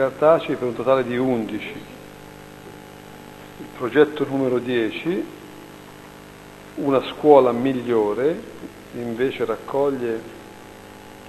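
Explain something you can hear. An elderly man speaks calmly through a microphone in a room with some echo.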